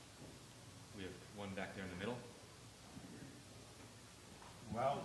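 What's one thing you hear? A man speaks calmly into a microphone in short phrases.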